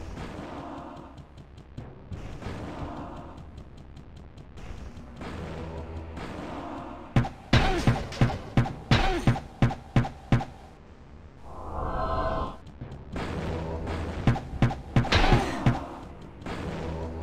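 Fireballs whoosh and burst with sharp blasts.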